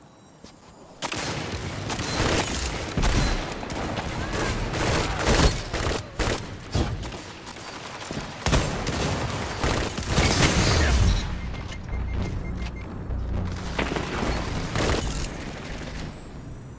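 Rapid gunshots crack loudly in bursts.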